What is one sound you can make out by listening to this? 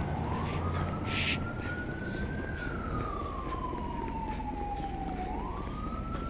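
Footsteps tread on pavement.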